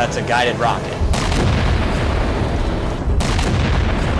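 A huge explosion booms and rumbles deeply.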